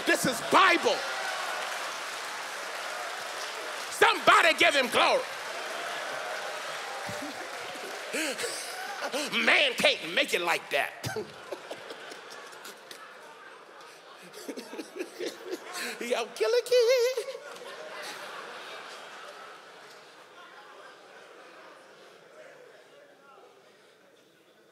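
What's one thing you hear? A large audience laughs and cheers.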